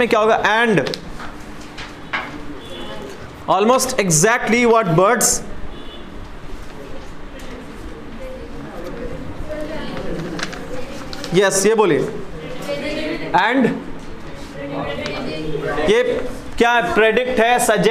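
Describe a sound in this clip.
A young man speaks clearly into a clip-on microphone, reading out in a teaching tone.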